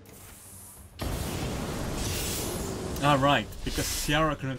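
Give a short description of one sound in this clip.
A flamethrower roars as a burst of fire sweeps out.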